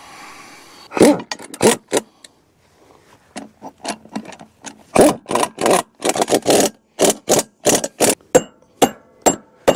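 A wrench clicks and knocks against a wheel's nuts.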